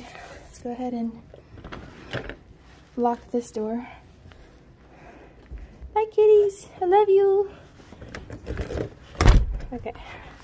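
A door handle clicks and rattles.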